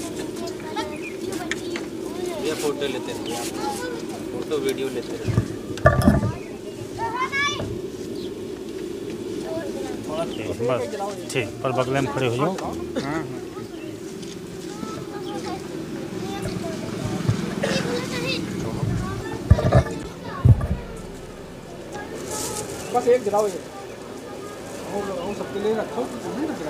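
A crowd of men chatter nearby.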